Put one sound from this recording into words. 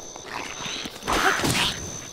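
A sword swings with a sharp swish.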